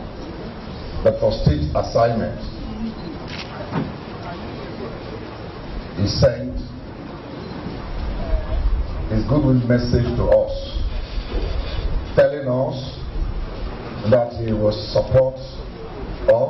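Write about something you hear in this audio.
A man speaks steadily into a microphone, heard through a loudspeaker in an echoing hall.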